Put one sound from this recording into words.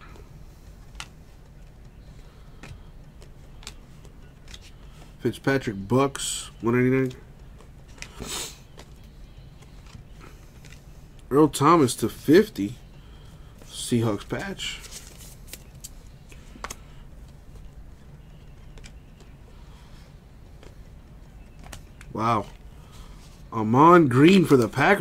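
Trading cards rustle and slide against each other in hands.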